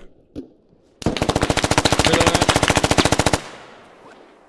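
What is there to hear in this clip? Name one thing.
A rifle fires in a long, rapid burst.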